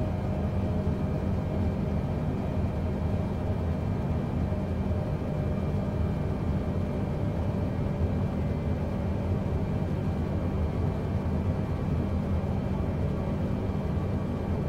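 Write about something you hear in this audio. Jet engines roar steadily with a low, constant rumble.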